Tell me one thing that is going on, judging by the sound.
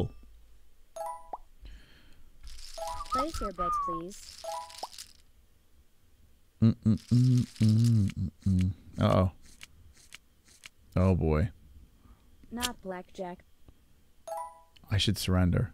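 Short electronic game chimes play.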